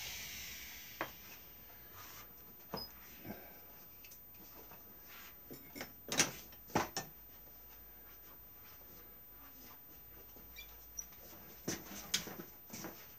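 Tools knock and clatter on a bench.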